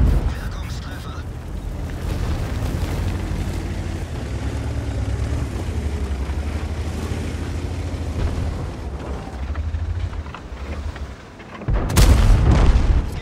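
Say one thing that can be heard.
A heavy tank engine rumbles low and steady as tracks clatter along.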